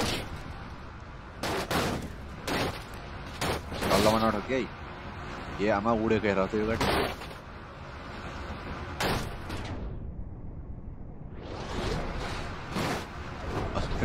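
A wrecked car crashes and tumbles with loud metal bangs and scrapes.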